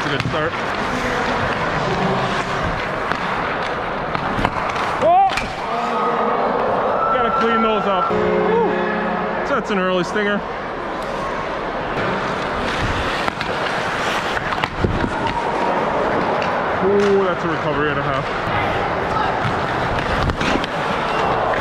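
Skate blades scrape and hiss on the ice.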